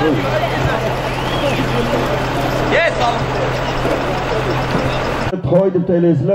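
A large crowd murmurs and shouts outdoors.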